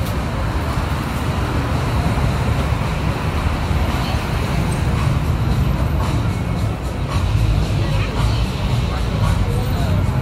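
A lively crowd murmurs in the street.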